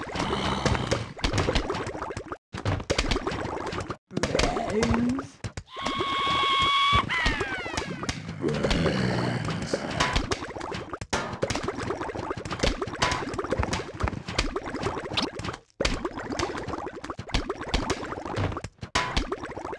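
Cartoonish game thumps and pops sound rapidly, over and over.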